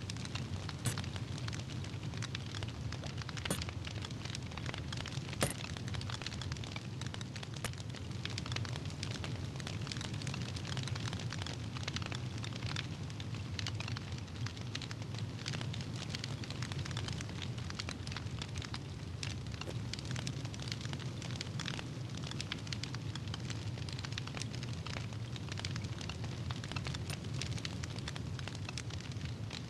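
Soft clicks sound as an item in a frame is turned again and again.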